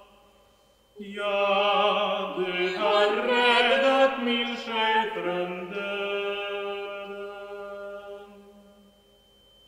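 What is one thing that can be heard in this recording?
A young woman sings in a clear, high voice in an echoing hall.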